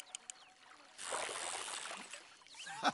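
A fish splashes out of the water.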